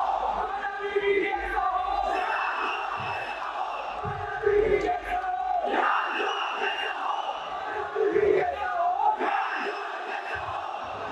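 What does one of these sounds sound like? A young man speaks into a microphone through a loudspeaker, in a large echoing hall.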